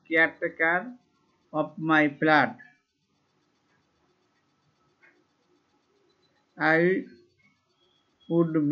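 A man speaks slowly and clearly, as if teaching, close to a microphone.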